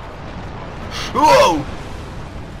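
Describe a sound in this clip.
A burst of fire roars and whooshes.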